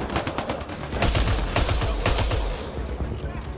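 Rapid gunshots crack in a quick burst.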